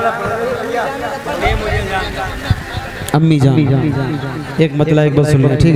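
A man chants loudly into a microphone over a loudspeaker outdoors, his voice rising and held in long notes.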